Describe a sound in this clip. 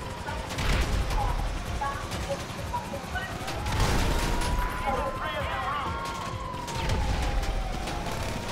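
Explosions boom in loud bursts.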